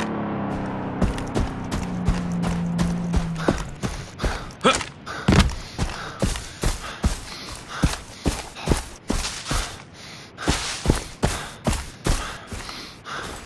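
Footsteps tread quickly and steadily over sand and grass.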